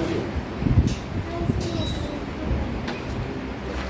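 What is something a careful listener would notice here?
A marker squeaks as it writes on a whiteboard.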